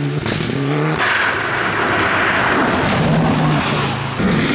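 A second rally car engine screams close by.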